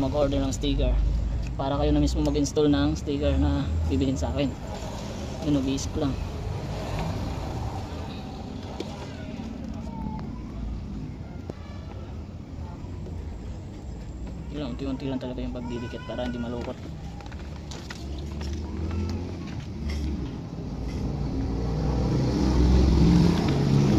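Fingers rub and smooth a plastic sticker onto a smooth surface.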